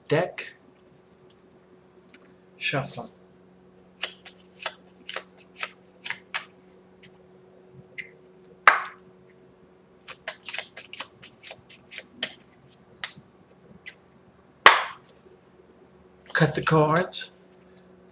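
Playing cards click and snap between hands, close by.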